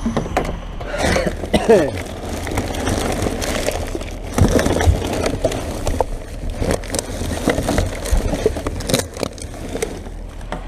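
Rubbish rustles and crinkles as gloved hands rummage through it.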